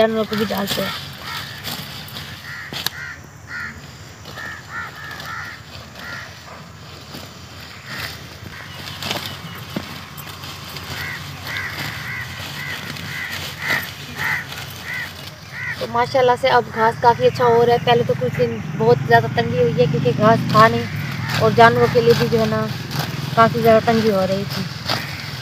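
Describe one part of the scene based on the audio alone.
Leafy stems snap and rustle as a woman picks greens by hand.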